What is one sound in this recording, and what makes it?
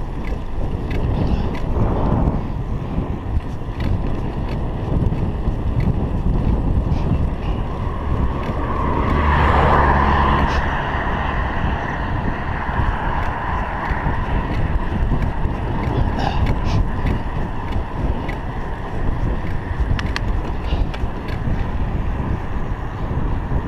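Wind rushes past a cyclist riding on a paved road.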